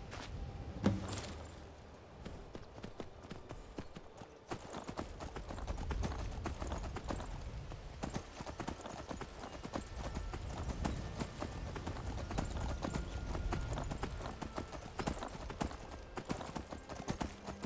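A horse's hooves thud quickly on the ground as it gallops.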